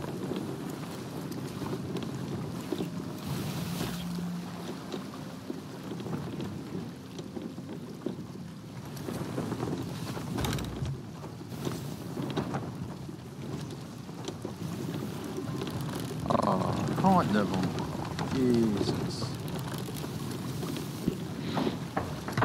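Waves wash steadily against a wooden ship's hull.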